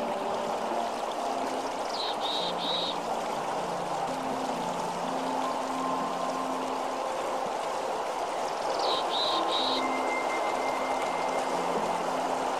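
A river rushes and splashes steadily over rocks.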